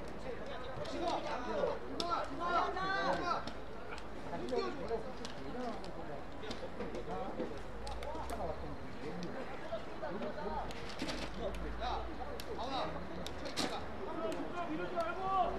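Young men shout and call to each other across an open field.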